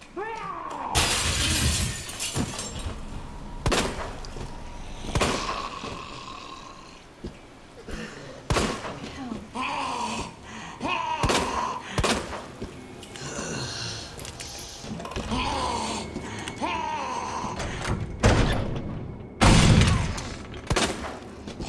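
A pistol fires sharp shots in an echoing space.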